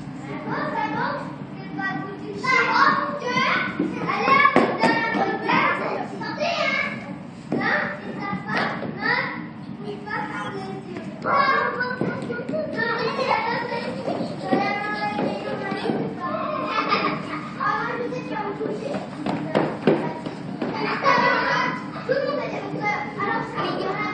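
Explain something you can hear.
A middle-aged man speaks calmly and explains close by, in a room with some echo.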